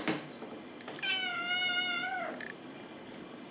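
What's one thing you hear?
A cat meows briefly.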